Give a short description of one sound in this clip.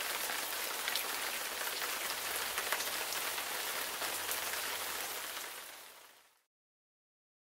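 Steady rain patters onto pavement and hedges outdoors, then fades away.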